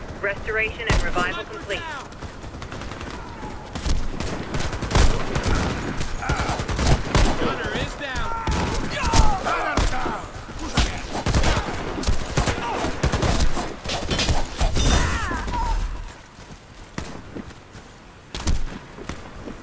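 A sword swishes through the air and strikes.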